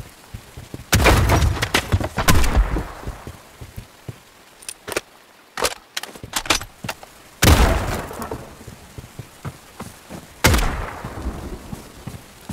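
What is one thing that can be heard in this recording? A rifle fires loud bursts that echo away.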